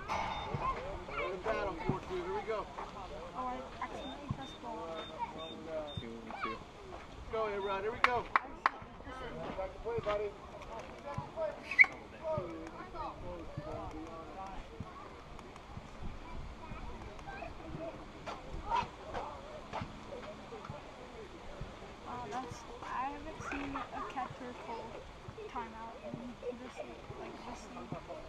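Children and adults talk and call out outdoors across an open field.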